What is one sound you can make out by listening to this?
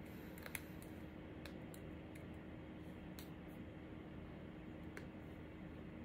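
Fingers tap lightly on a device now and then.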